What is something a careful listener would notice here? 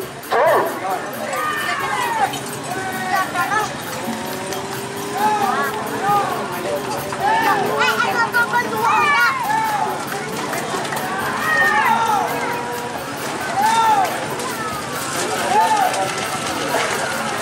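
Spectators whistle loudly in rising and falling tones.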